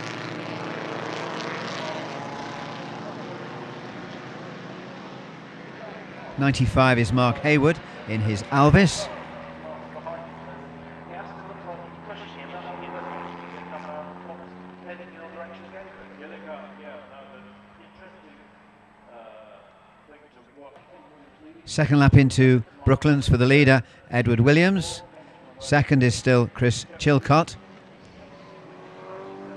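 A vintage racing car engine drones and roars as cars speed past.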